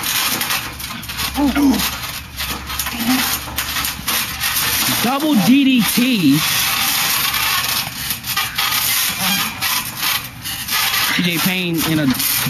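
Bodies thud and bounce on a trampoline mat.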